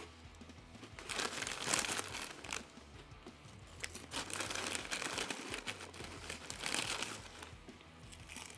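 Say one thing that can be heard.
A paper wrapper crinkles and rustles.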